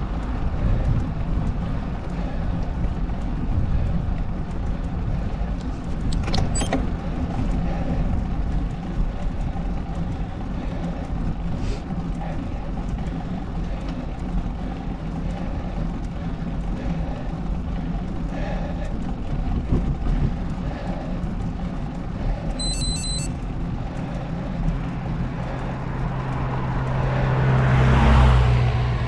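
Small tyres roll and hum on smooth asphalt.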